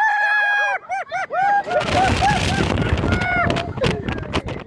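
Riders scream loudly on a roller coaster.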